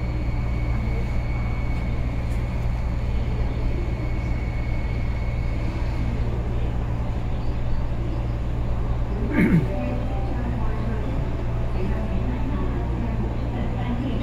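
A train hums steadily with a low drone.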